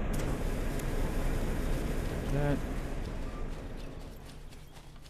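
A tank engine rumbles low and steadily nearby.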